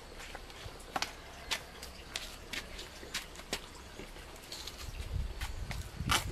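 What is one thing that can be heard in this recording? Footsteps tap on a hard floor close by.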